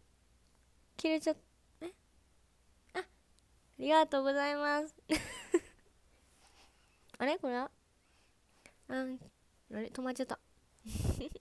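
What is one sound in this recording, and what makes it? A young woman speaks in short, playful bursts close to a microphone.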